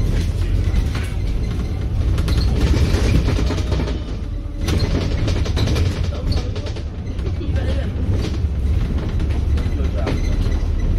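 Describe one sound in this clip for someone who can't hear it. A vehicle engine rumbles steadily as it drives along a road.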